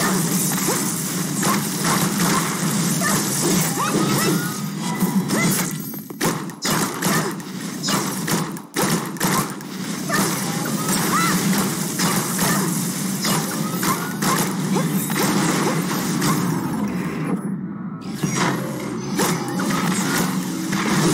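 Game blows and blasts hit again and again with sharp impacts.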